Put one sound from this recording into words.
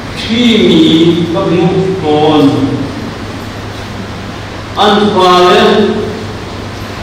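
An elderly man reads out calmly through a microphone.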